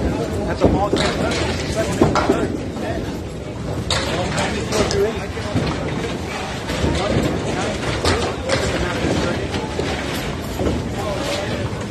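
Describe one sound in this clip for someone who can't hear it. Bowling balls clatter and knock around a large echoing hall.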